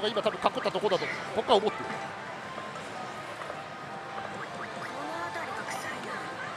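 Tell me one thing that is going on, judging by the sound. A slot machine plays electronic jingles and sound effects.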